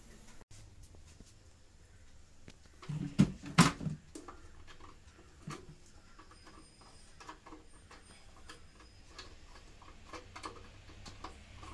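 Wires and fittings knock and click as hands work inside a metal box.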